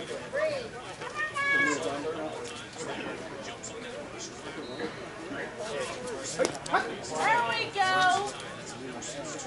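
Men shout and call out to each other across an open field.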